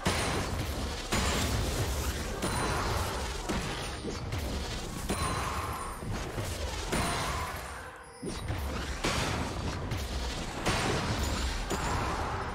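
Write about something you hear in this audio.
Game spells whoosh and crackle during a fast fight.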